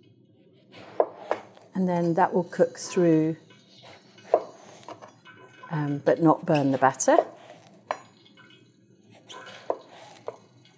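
A knife taps and thuds on a wooden chopping board.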